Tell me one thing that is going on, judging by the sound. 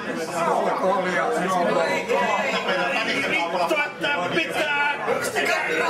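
A middle-aged man laughs.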